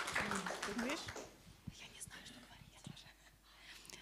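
A young woman talks through a microphone.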